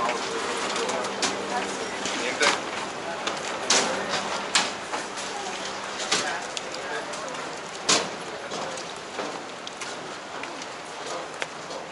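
Footsteps tap on a metal gangway.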